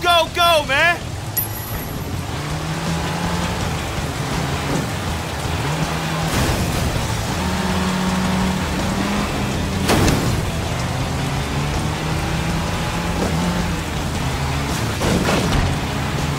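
Tyres splash through puddles on a wet road.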